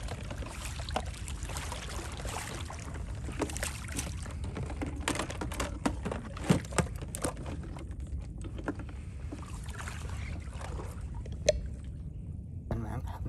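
Water splashes and laps against a small boat.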